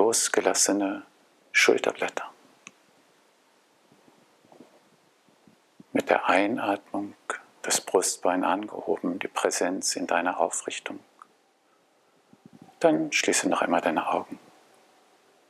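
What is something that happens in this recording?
A man speaks calmly and close by, with pauses between phrases.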